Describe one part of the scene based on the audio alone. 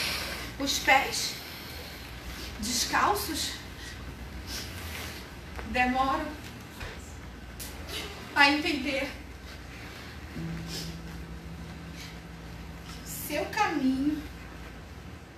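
A woman speaks and sings out in short expressive phrases, nearby.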